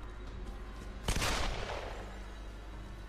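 A man fires a shotgun, a loud blast that echoes.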